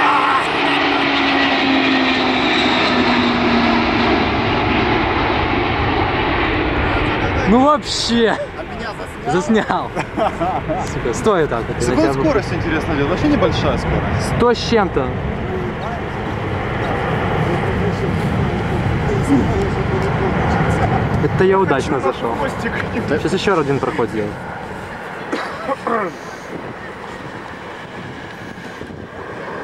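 Wind buffets outdoors.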